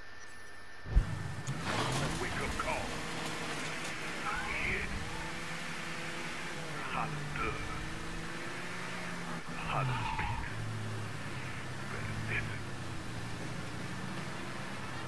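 A car engine revs up and changes pitch as the car drives.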